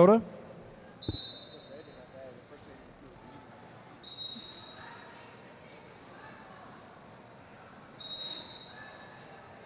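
A referee's whistle blows short, sharp blasts in a large echoing hall.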